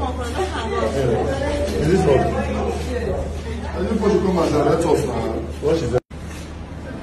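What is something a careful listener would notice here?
Several men and women shout and talk excitedly close by.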